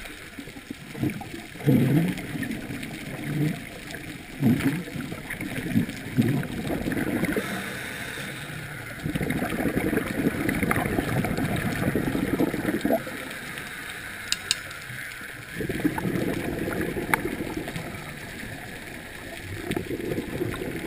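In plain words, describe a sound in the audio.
A diver breathes through a regulator underwater, with bubbles rushing and gurgling in bursts.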